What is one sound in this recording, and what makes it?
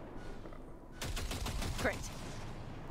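A turret gun fires rapid shots.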